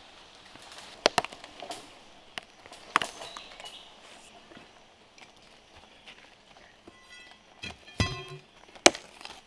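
A machete chops into the base of a small tree with sharp thuds.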